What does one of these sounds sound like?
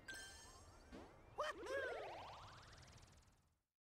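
A cartoon character jumps with a bright rising chime.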